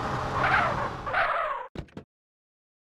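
A car engine revs and then cuts off.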